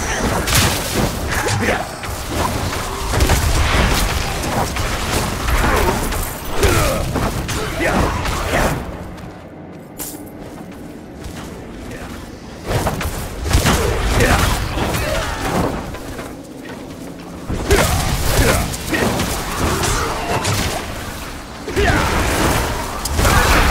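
Fiery spell blasts and combat effects crackle and boom.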